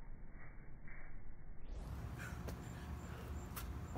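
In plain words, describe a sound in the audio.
Feet thud on concrete as a man jumps.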